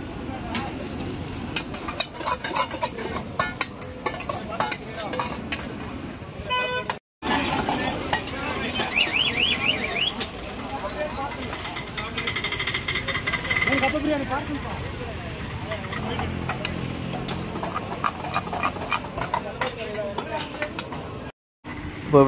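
Metal spatulas clank and scrape against a wok.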